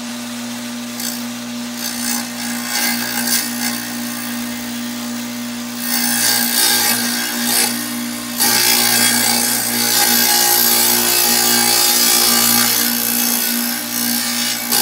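A tile saw blade grinds through tile, louder and harsher at times.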